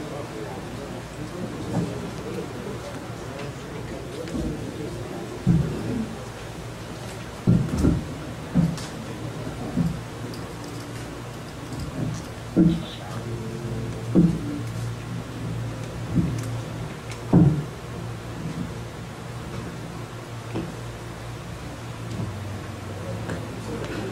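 A man speaks calmly at a distance in a room.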